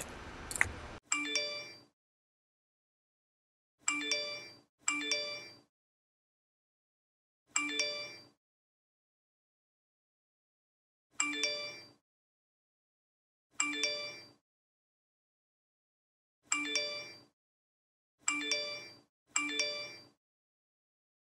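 A phone chimes with each incoming text message.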